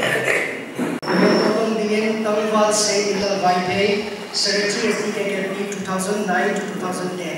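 A man speaks steadily into a microphone, heard through loudspeakers in an echoing hall.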